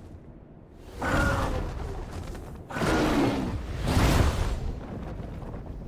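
A huge beast roars loudly with a deep, rumbling growl.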